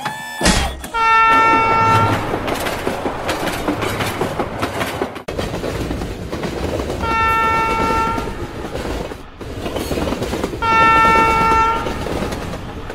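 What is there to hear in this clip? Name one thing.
A train horn blares loudly in long blasts.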